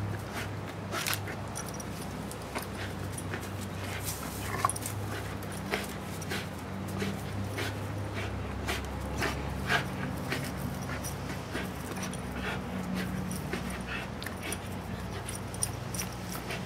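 A dog's paws thud on the grass as it jumps.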